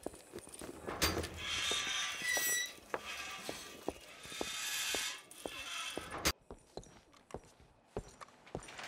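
Footsteps tread on the ground.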